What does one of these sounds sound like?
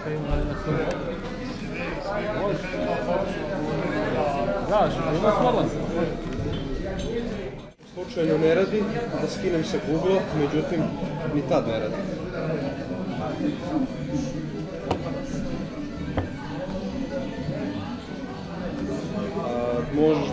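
Several men talk nearby in a room.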